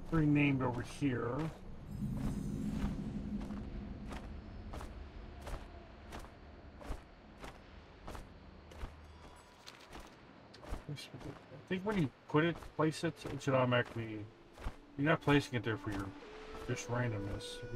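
Large wings beat in slow, steady flaps.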